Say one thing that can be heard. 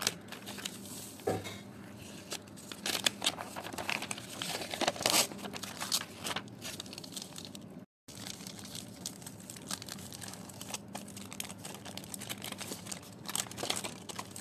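Foil crinkles as it is unfolded.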